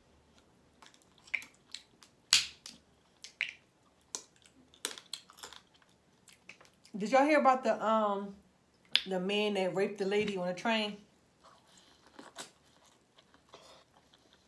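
A young woman chews and smacks her lips loudly close to a microphone.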